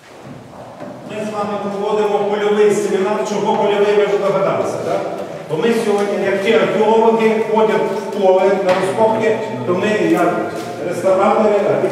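A man speaks loudly with animation close by.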